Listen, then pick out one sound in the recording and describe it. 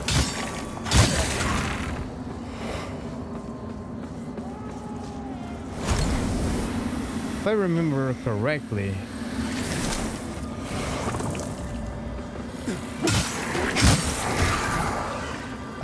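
Metal weapons strike and thud in a fight.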